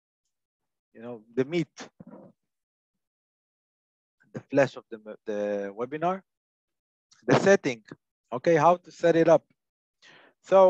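A man speaks calmly into a close microphone, as if on an online call.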